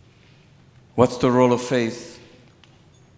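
A man sings a prayer through a microphone in a large echoing hall.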